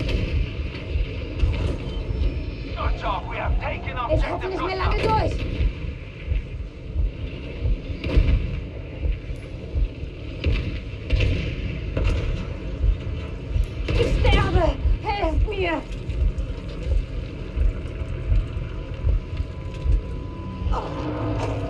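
Explosions boom and rumble repeatedly nearby.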